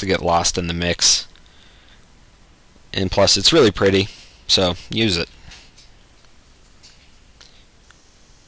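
Small scissors snip softly.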